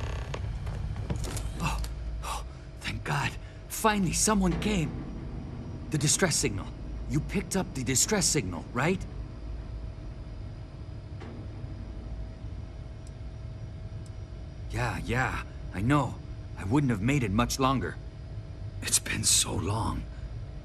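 A middle-aged man speaks anxiously and with relief, close by.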